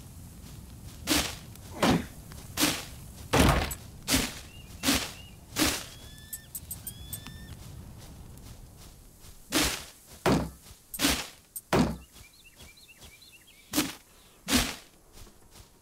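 Axe blows thud on wood again and again.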